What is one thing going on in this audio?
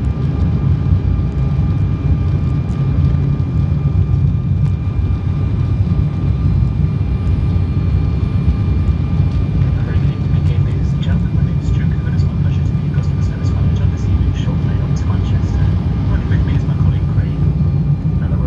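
Jet engines roar steadily in a deep, constant drone.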